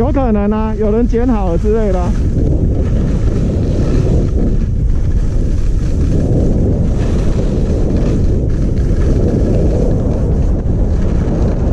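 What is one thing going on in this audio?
Wind rushes loudly past, swelling as speed builds.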